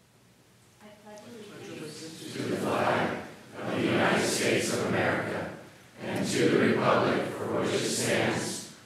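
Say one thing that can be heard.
A large crowd of men and women recites together in unison in an echoing hall.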